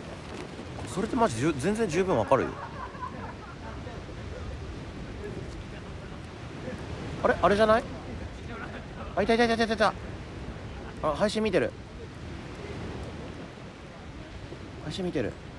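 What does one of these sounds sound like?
A man talks casually, close to the microphone.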